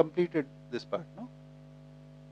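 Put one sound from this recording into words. A middle-aged man speaks a few words calmly, then falls silent.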